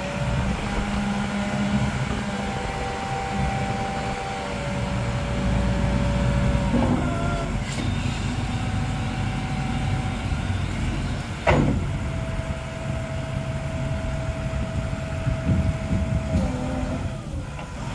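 A forklift's hydraulics whine as the forks shift.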